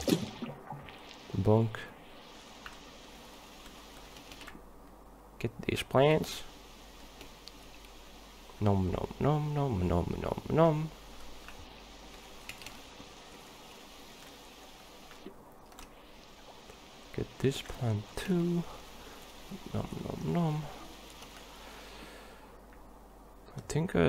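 Water pours down steadily in a small waterfall.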